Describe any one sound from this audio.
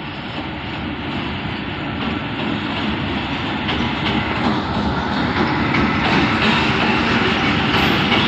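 A diesel locomotive rumbles past close by.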